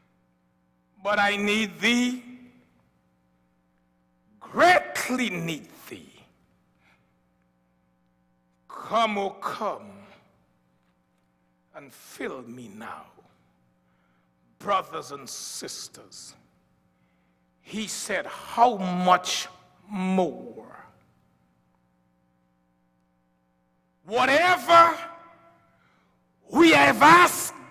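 An elderly man preaches with passion into a microphone, in short bursts with pauses between.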